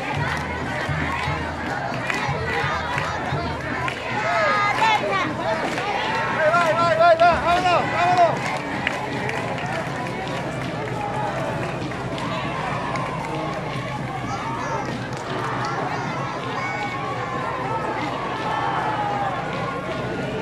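A large crowd of men and women chatters outdoors.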